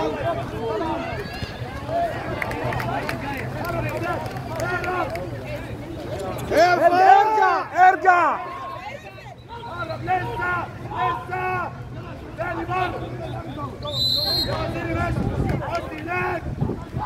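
Several men shout and call out loudly in an echoing space.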